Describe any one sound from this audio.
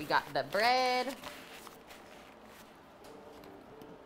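A paper bag rustles as it is handled.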